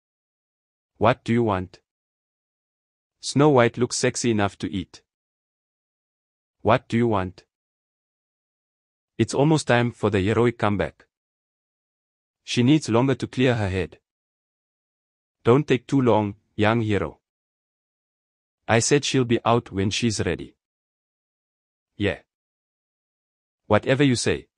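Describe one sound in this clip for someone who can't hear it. A man speaks in short, tense lines with silent pauses between them.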